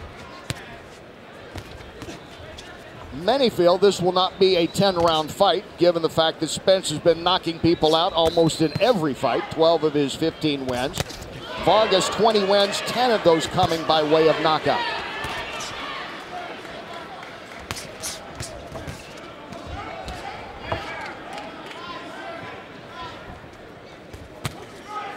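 Gloved punches thud on a boxer's body.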